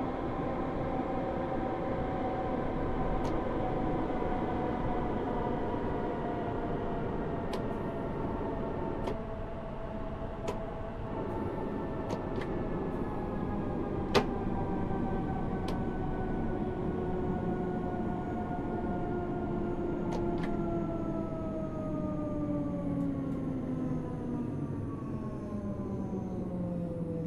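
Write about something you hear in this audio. Train wheels rumble and click over the rails.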